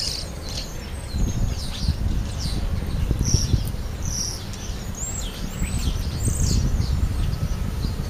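Small birds chirp and squeak nearby.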